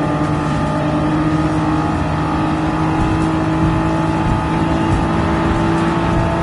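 A car engine roars steadily at high revs in top gear.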